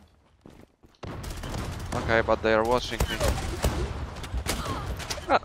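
Gunshots crack in quick bursts.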